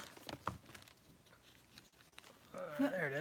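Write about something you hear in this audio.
Plastic packaging crinkles and clicks in hands.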